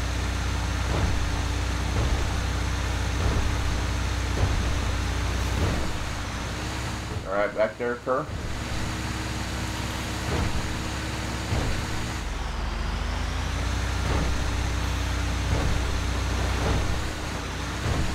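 Tyres thump over wooden planks.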